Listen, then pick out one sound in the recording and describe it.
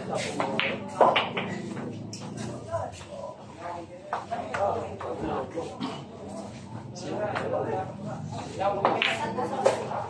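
A cue stick strikes a pool ball with a sharp click.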